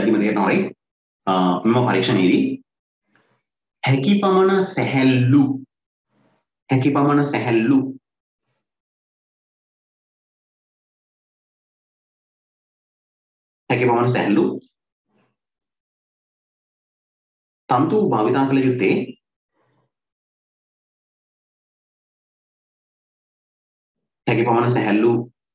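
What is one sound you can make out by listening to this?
A man speaks calmly into a microphone, in short bursts with long pauses.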